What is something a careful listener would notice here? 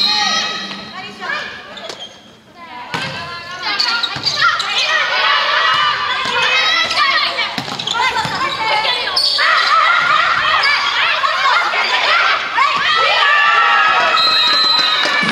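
Young women shout and call out loudly across an echoing hall.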